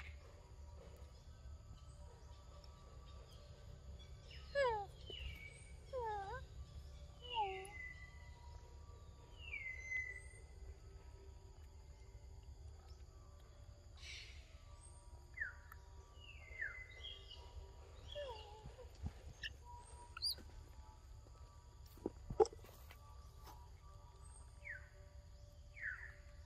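A monkey chews and munches on juicy fruit close by.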